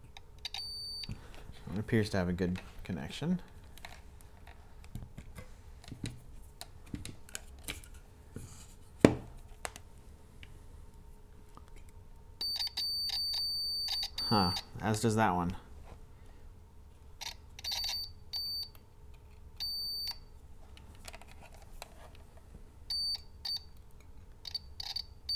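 A multimeter beeps in short, high bursts.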